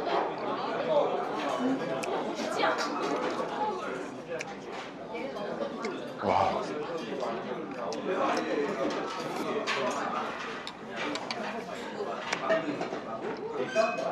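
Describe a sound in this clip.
A young man chews and slurps food noisily up close.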